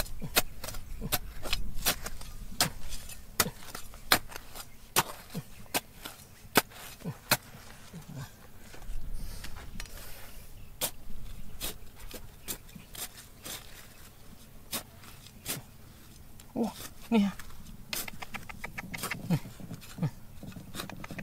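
A metal trowel scrapes and digs into dry, gravelly soil.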